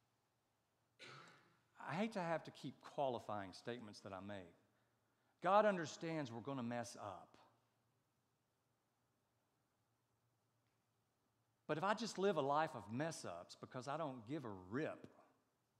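A middle-aged man speaks with emphasis through a microphone, with pauses.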